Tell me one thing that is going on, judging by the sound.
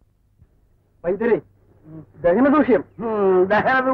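A man talks loudly and with animation.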